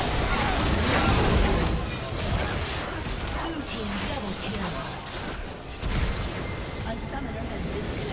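Game spells and hits clash and crackle in a busy battle.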